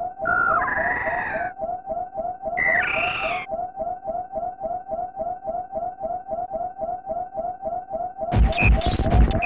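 A steady, rapid low throbbing pulse repeats throughout.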